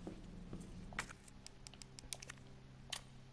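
A typewriter's keys clack in quick succession.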